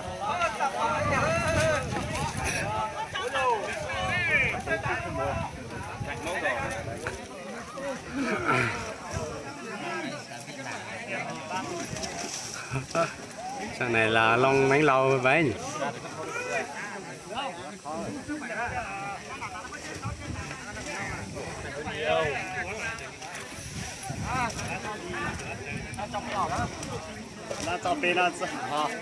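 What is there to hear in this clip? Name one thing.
A crowd of men and women shout and cheer excitedly outdoors.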